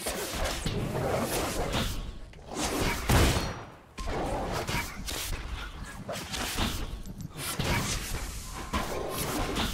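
Weapon strikes and magic blasts clash rapidly in a fight.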